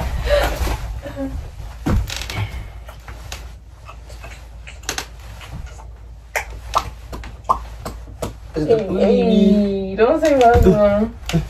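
A couple kisses with soft, wet smacking sounds.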